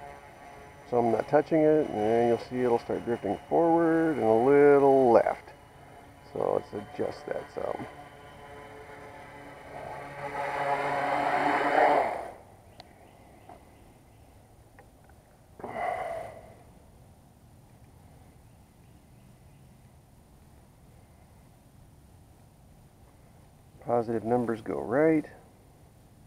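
The electric motors of a small tricopter spin up and down in whining bursts.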